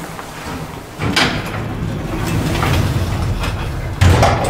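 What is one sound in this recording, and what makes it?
Elevator doors slide shut with a thud.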